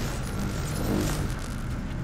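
A laser beam fires with a buzzing hum.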